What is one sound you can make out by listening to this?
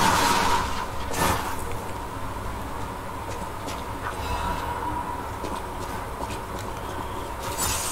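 Footsteps rustle through grass and dirt.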